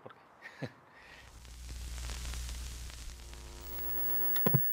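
Television static hisses and crackles, growing louder and then steadying.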